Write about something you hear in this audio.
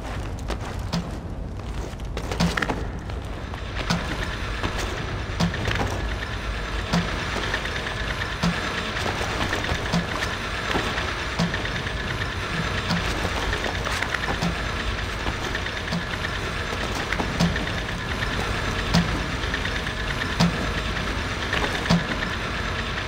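Heavy water pours and splashes down steadily.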